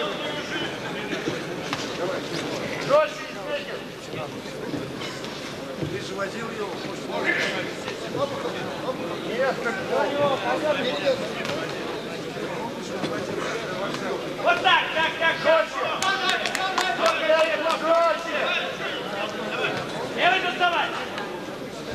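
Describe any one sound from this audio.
Boxing gloves thud as two boxers trade punches.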